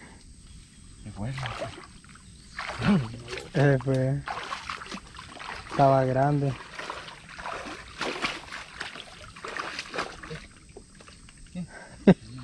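Water splashes as hands move through shallow water.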